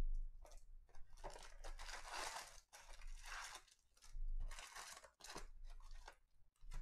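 Foil card packs rustle and slide against each other.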